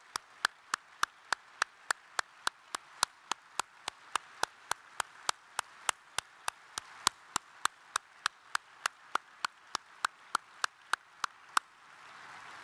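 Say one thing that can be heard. A man claps his hands steadily close to a microphone.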